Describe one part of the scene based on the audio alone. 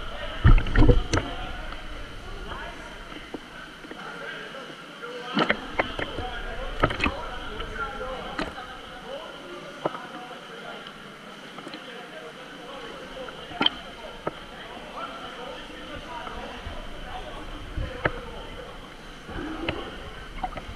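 Young men's voices call out across the water, echoing.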